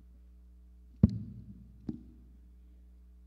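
Objects knock sharply on a table, echoing in a large hall.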